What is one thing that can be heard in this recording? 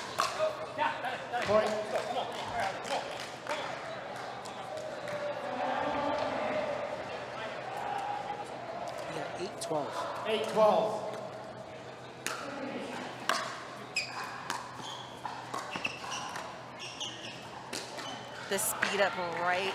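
Paddles strike a plastic ball with sharp pops.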